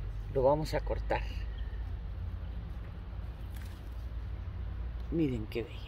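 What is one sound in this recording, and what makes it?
Leaves rustle softly as a hand handles a large flower.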